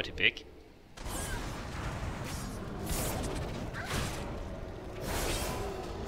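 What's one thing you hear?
A fiery spell whooshes and crackles.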